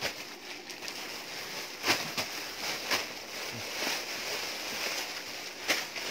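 Denim clothes rustle and flap as a woman handles them.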